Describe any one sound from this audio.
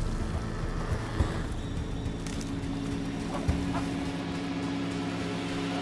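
Footsteps thud softly on the ground.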